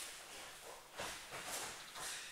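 A body thuds onto a padded mat.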